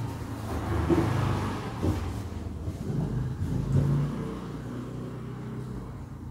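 Hands rub and smooth fabric on a table with a soft rustle.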